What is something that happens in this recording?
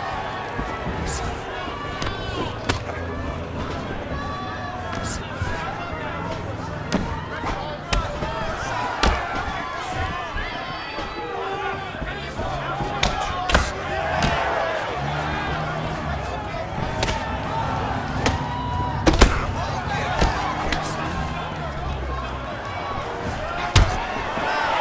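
A crowd murmurs and cheers in a large hall.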